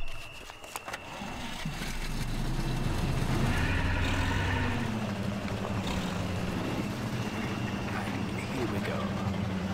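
A truck engine starts and rumbles steadily.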